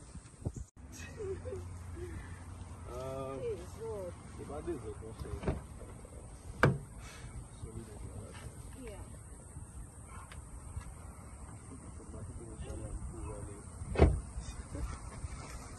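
A young man talks nearby, outdoors.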